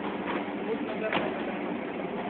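Plastic crates clatter as they are handled.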